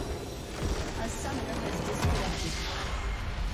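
A magical blast booms and crackles.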